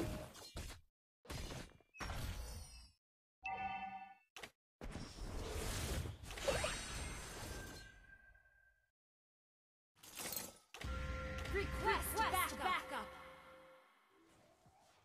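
Fantasy game spell effects whoosh and burst in quick bursts.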